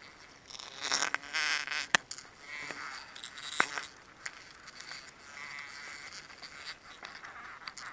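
A plastic bottle crinkles and crackles in gloved hands.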